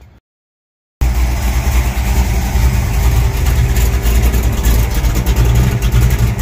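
A car engine idles nearby with a loud, low, steady rumble.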